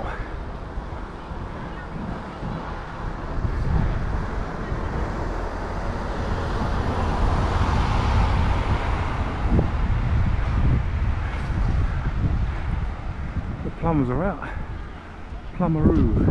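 Wind rushes steadily past a moving motorcycle outdoors.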